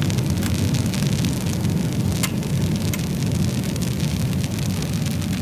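Burning logs crackle and pop now and then.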